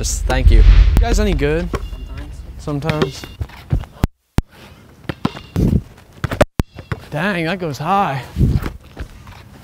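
A basketball bounces on an outdoor court.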